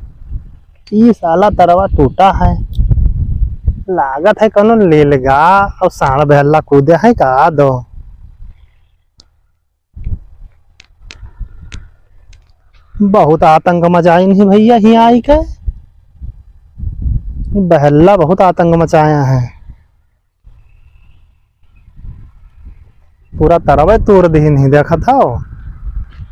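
A man speaks calmly into a close microphone, outdoors.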